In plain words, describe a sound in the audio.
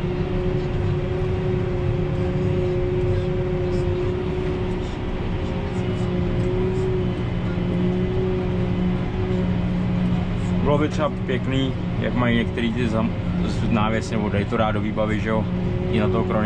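A tractor engine drones steadily, heard from inside the cab.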